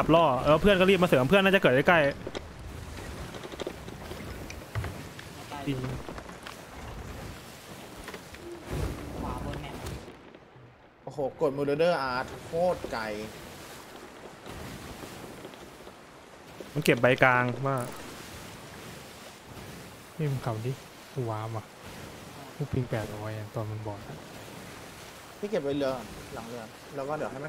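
Rough sea waves surge and crash steadily.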